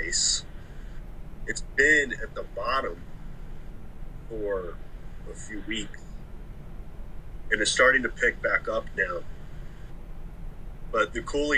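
A man talks casually over an online call.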